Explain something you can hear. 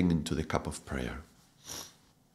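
A middle-aged man speaks calmly and softly close to a microphone.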